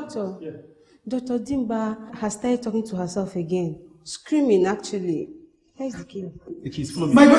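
A young woman speaks anxiously, close by.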